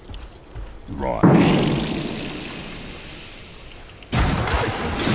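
A spell whooshes with a loud burst.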